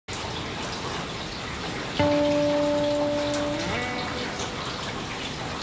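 River water rushes over rocks in rapids.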